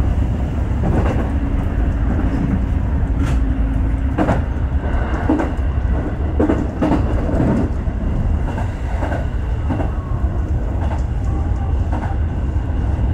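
Train wheels clack over rail joints and points.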